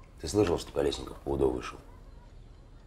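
A young man speaks calmly at close range.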